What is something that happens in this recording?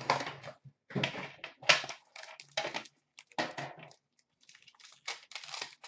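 A foil wrapper crinkles and tears as it is opened by hand.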